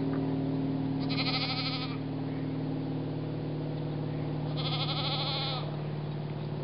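A goat bleats loudly nearby.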